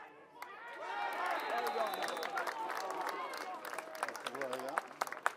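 Spectators cheer and shout loudly.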